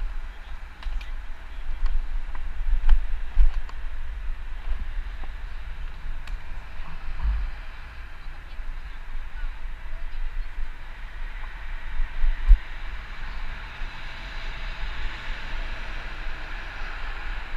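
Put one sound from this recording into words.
Skateboard wheels roll over rough pavement with a steady grinding hiss.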